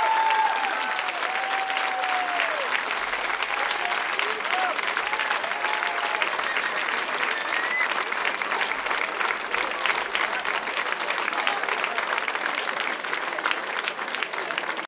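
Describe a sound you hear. A large crowd claps and applauds.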